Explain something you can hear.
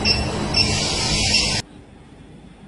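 A pressurised jet of vapour hisses.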